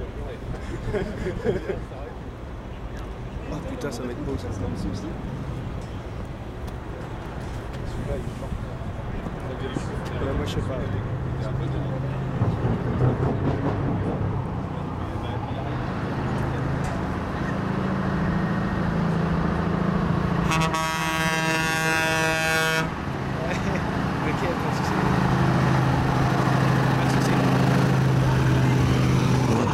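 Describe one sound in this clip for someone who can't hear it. A heavy truck engine rumbles as the truck drives slowly past, growing louder.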